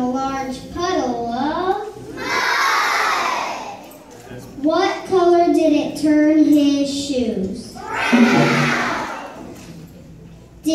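A large choir of young children sings together loudly in an echoing hall.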